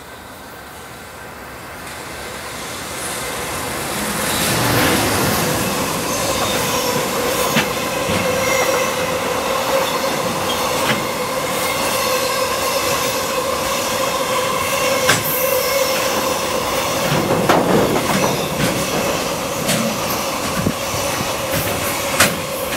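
A freight train approaches and rumbles past close by.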